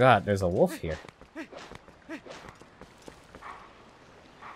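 Quick footsteps patter over soft ground.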